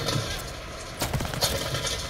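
A rifle fires a loud shot close by.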